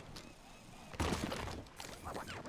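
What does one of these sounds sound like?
A bicycle rider crashes to the ground with a heavy thud.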